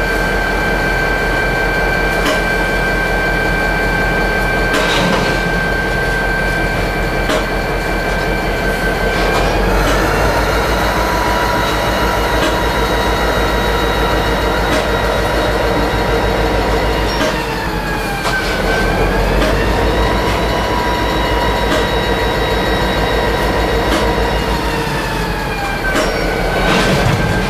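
A diesel locomotive engine drones loudly nearby, its pitch rising and falling as it revs.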